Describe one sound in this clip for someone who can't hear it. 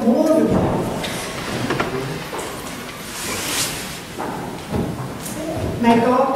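A woman speaks, heard from afar in a large echoing hall.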